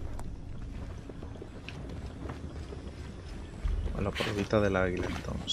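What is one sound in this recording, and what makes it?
Footsteps patter quickly on stone and earth.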